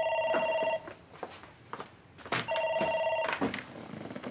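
A desk telephone rings in short bursts.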